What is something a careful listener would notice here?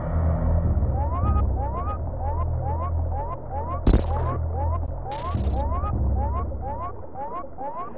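Quick rising electronic chirps repeat rapidly in a steady rhythm.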